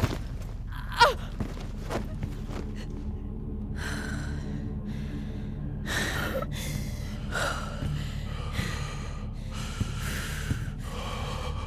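Heavy footsteps shuffle across a hard floor.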